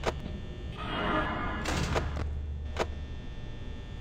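A heavy metal door slams shut.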